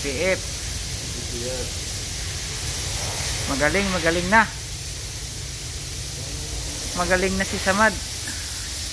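A young man speaks briefly nearby.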